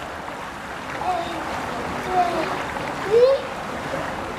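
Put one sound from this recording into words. A young girl talks and laughs nearby.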